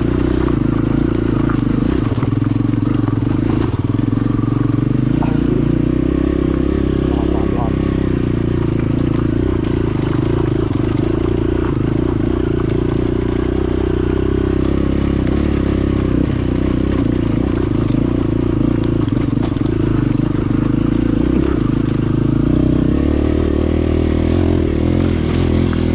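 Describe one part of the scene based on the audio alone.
A dirt bike engine labours uphill under load.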